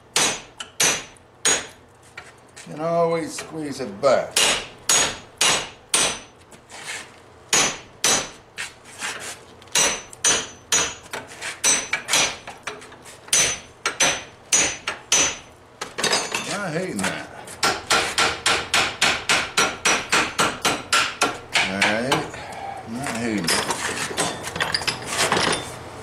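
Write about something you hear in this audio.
A hammer strikes metal in rapid ringing blows.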